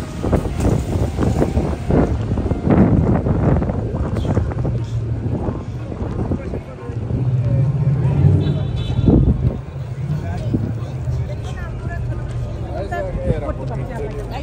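A crowd of passers-by chatters nearby.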